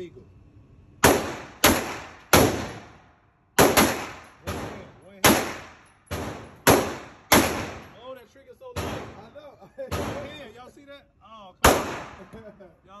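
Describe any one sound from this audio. A pistol fires single shots that echo sharply in an indoor range.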